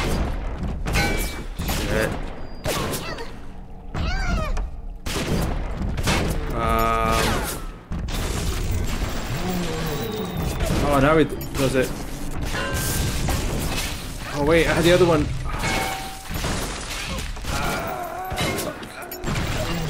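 A young man talks with animation over a microphone.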